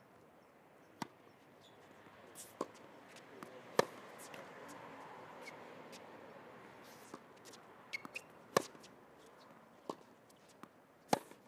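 A tennis ball is struck sharply with a racket, back and forth.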